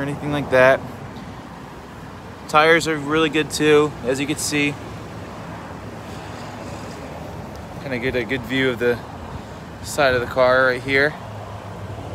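A man speaks calmly and close to the microphone in short bursts.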